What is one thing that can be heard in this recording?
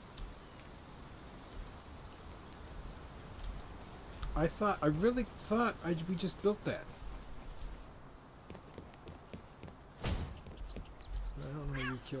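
Footsteps tread on grass and wooden planks.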